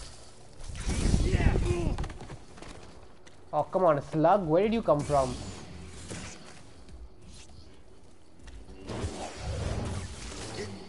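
A lightsaber hums and swooshes through the air.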